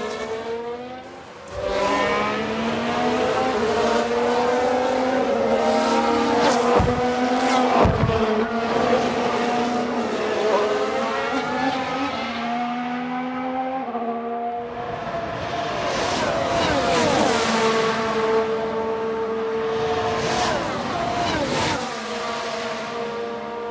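Racing car engines scream at high revs and shift up and down in pitch.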